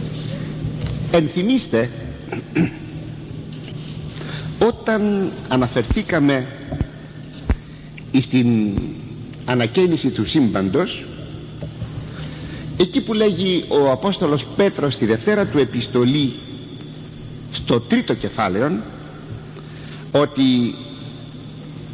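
An elderly man speaks slowly and calmly, heard through an old recording.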